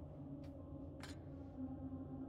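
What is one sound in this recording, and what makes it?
A key clinks against a hook.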